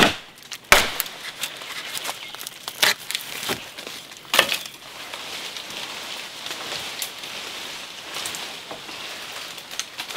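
Branches and leaves rustle as someone pushes through undergrowth.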